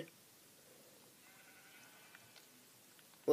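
A pig grunts softly.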